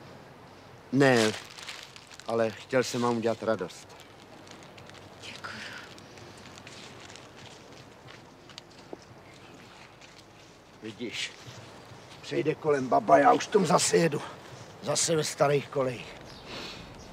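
A middle-aged man speaks gently, close by.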